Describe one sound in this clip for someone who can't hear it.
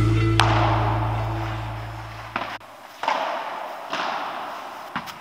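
Padel rackets strike a ball with sharp pops in a large echoing hall.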